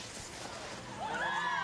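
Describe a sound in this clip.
A crowd cheers outdoors.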